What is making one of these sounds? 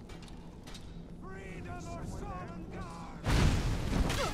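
A man shouts a battle cry.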